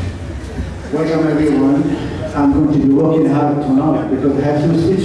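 An elderly man speaks calmly into a microphone up close.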